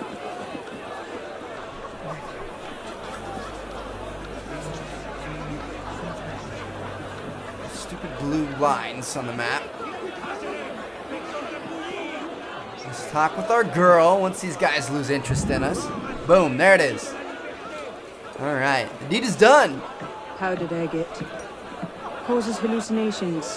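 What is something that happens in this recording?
A crowd murmurs and chatters all around.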